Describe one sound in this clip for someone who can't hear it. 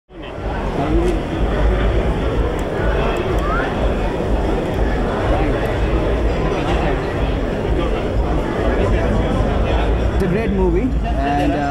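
A crowd of men chatter loudly close by.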